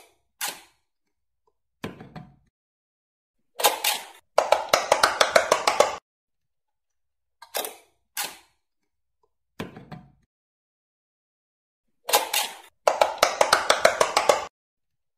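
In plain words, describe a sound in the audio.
An electronic toy game plays short bursts of beeping tunes.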